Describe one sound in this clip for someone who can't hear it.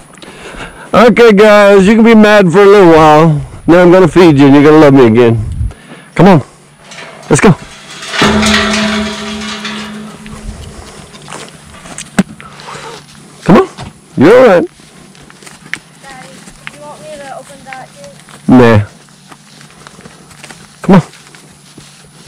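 Cattle moo loudly close by.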